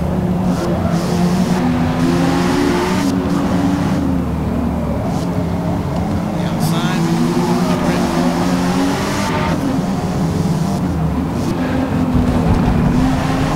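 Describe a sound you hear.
Tyres screech on the track.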